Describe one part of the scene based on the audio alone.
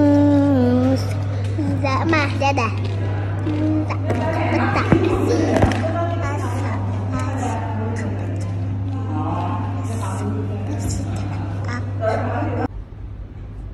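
A young girl talks and sings close by with animation.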